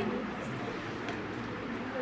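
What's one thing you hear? Chalk scrapes across a board.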